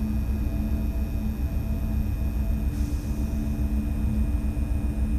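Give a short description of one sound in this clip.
A train's motor hums with a steady low drone.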